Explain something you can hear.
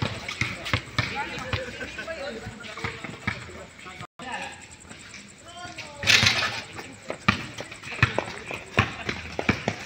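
A basketball bounces on hard concrete, thudding repeatedly.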